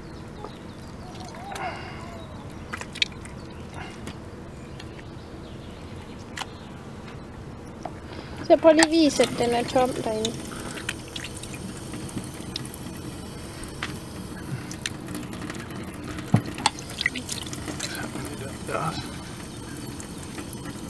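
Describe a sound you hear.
Hands handle a wet fish in a stainless steel sink.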